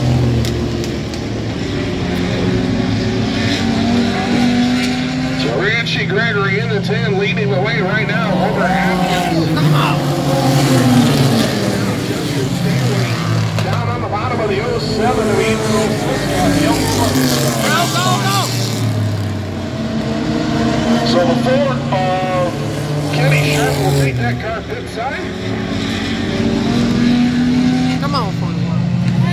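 Racing car engines roar steadily around a track, rising and falling in pitch as they pass.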